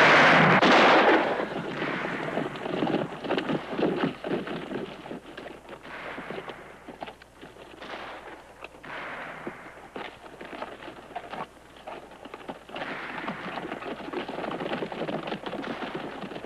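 Horses' hooves clatter on a stony trail.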